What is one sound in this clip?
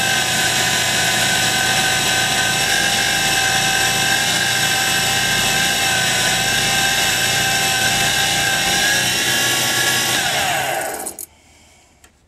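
A wood lathe motor whines at speed and then spins down.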